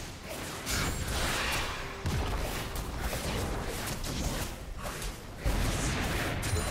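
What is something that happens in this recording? Game attacks clash and thud repeatedly.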